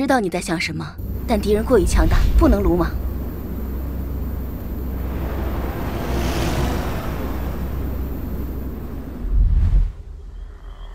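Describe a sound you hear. A hovering vehicle hums and roars steadily.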